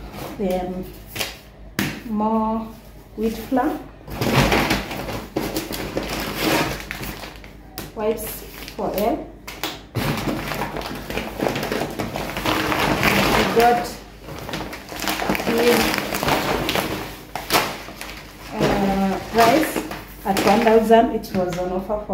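Packets are set down on a counter with soft thuds.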